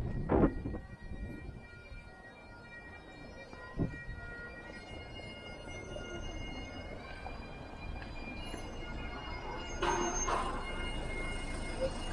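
Street traffic hums steadily outdoors.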